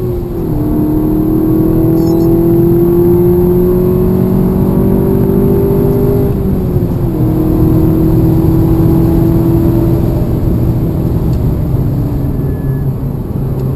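A race car engine roars at high revs, climbing through the gears with a shift around six seconds.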